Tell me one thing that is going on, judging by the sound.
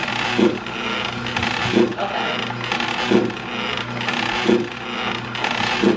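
A fan whirs steadily close by.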